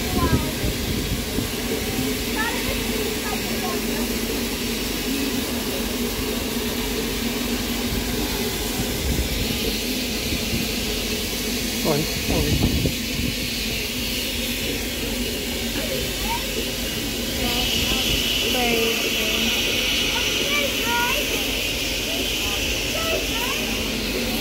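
A crowd of people chatter in the background outdoors.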